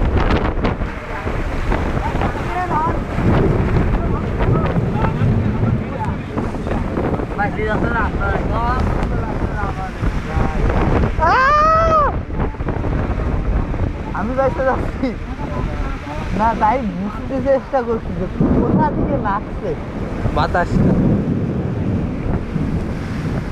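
Strong gusting wind roars outdoors.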